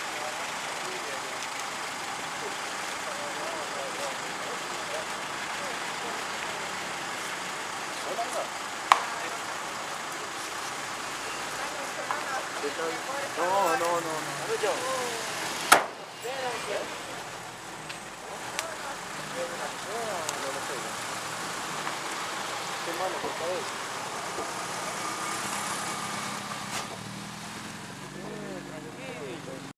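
Men talk outdoors at night, some way off.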